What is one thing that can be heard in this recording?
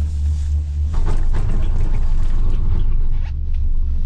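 A cable car cabin clatters and rattles as it passes over a lift tower.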